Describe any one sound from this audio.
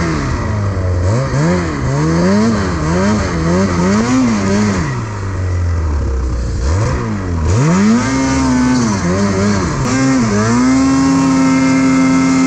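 A snowmobile engine revs up and down loudly close by.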